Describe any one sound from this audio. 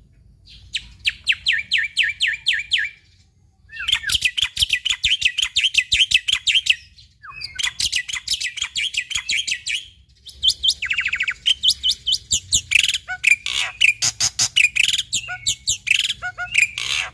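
A caged bird sings loud, rapid chirping trills in bursts, close by.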